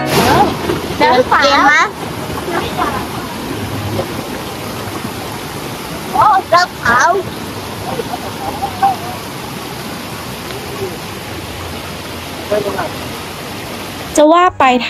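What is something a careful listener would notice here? A young girl talks and squeals excitedly nearby.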